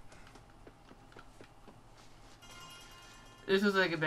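Footsteps crunch through dry grass and dirt.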